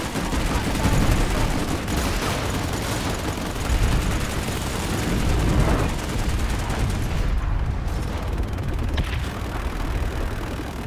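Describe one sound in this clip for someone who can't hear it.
Aircraft engines roar steadily overhead.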